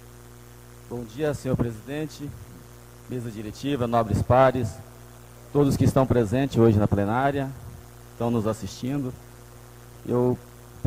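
Another man speaks with animation into a microphone in an echoing hall.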